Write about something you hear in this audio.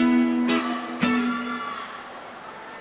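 An electric guitar strums loud chords through an amplifier.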